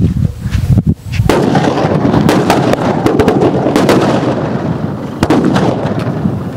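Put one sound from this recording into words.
A firework explodes with a loud bang and roars.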